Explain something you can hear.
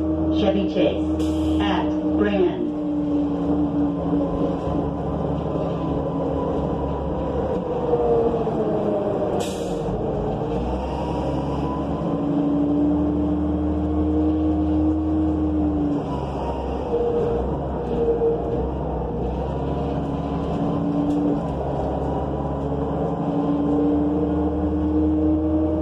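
A bus engine hums and whines as the bus drives along.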